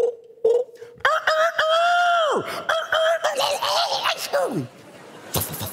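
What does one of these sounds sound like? A middle-aged man sings through a microphone.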